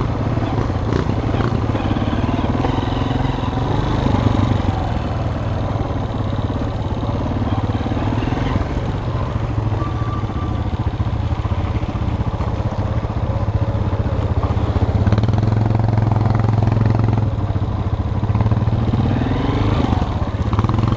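A dirt bike engine drones up close, revving up and down.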